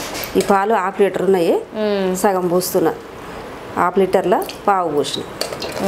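Liquid pours into a metal pot.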